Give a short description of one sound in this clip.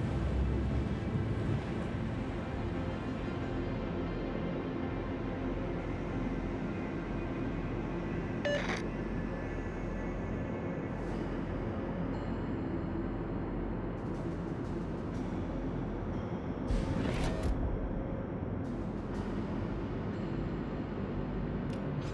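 A large ship's engines rumble steadily.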